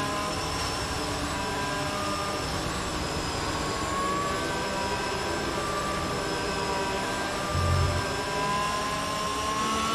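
A racing car engine whines at high revs, its pitch rising and falling with gear changes.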